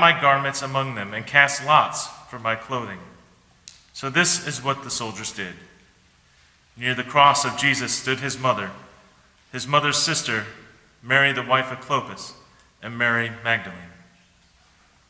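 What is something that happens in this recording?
A man reads aloud calmly through a microphone in an echoing hall.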